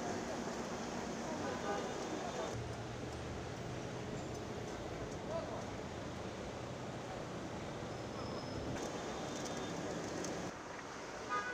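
A crowd murmurs and chatters in a busy street.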